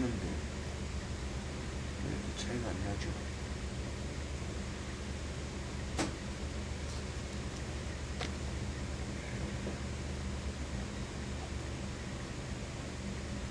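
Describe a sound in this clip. Cloth rustles and slides softly as hands smooth it flat.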